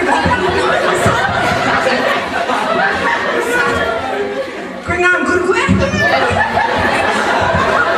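A young man speaks into a microphone over a loudspeaker, in a room with echo.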